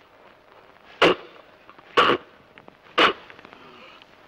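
A man gives short, loud exclamations.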